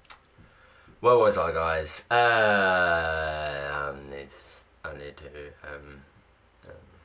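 A young man speaks loudly and with animation, close by.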